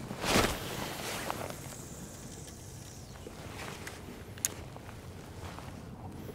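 A fishing reel clicks as its line is let out.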